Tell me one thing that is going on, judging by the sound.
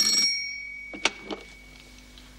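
A telephone receiver is picked up with a clatter.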